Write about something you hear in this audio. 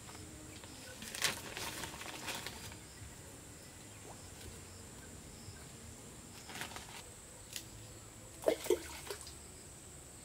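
Leaves rustle and twigs snap as fruit is picked from branches.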